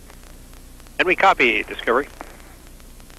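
A man speaks briefly over a crackly radio link.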